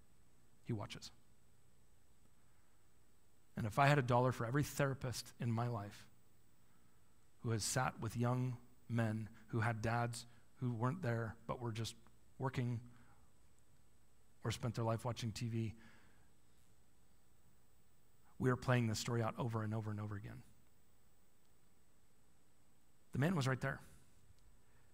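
A man speaks calmly into a microphone in bursts, with pauses, in an echoing hall.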